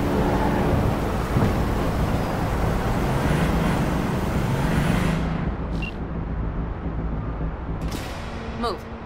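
An engine rumbles loudly as a vehicle drives over rough ground.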